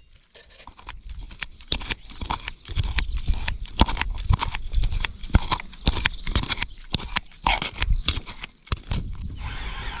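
A metal spoon scrapes and clicks against a plastic cup.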